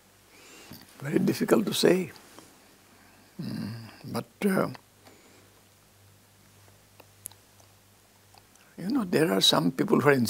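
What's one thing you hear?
An elderly man speaks calmly and haltingly, close to a microphone.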